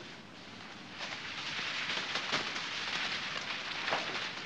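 Papers rustle and flutter as they are tossed about.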